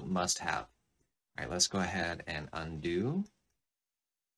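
A man talks calmly and clearly into a close microphone.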